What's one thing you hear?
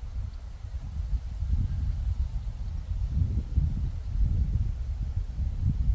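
Wind rumbles and buffets against the microphone outdoors.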